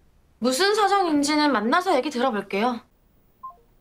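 A young woman speaks calmly over a phone.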